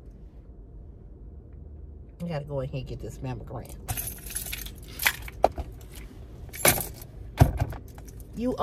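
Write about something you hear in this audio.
A woman's bracelets jingle and clatter as she moves her hands.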